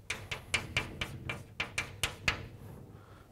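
Chalk taps and clicks quickly against a blackboard.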